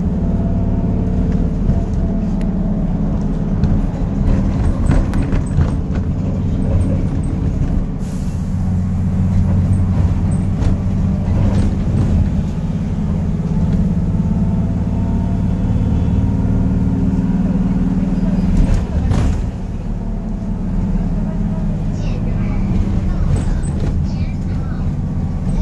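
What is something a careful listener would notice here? A young woman talks quietly and close by.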